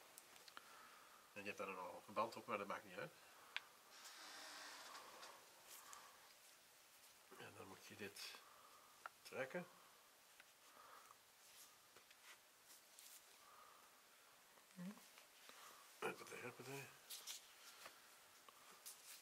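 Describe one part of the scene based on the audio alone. Latex gloves and a bandage rustle softly.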